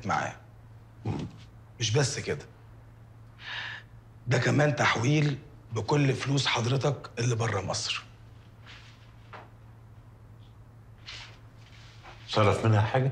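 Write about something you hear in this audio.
An elderly man speaks in a deep, calm voice close by.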